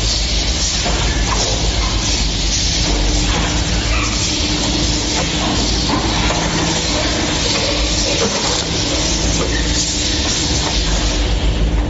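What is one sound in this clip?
A machine hums loudly and steadily.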